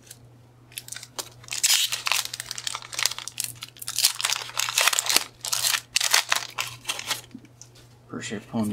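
A foil wrapper crackles and tears open.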